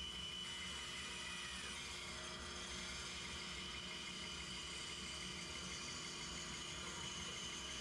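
A band saw whines steadily as it cuts through wood.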